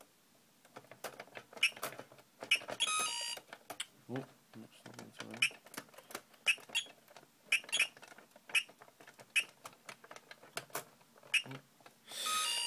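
Plastic buttons click as they are pressed rapidly.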